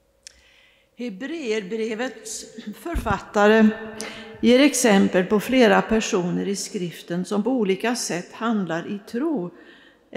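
A man sings with vibrato in a large echoing hall.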